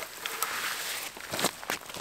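Footsteps crunch on snow and twigs.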